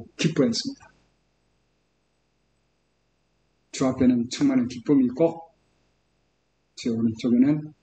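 An older man speaks calmly through a computer microphone, in short bursts with pauses.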